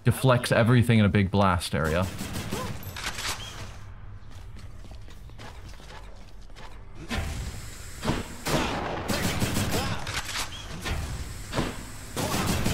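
Quick blade slashes and hits ring out in bursts.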